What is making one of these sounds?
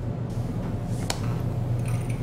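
A light switch clicks.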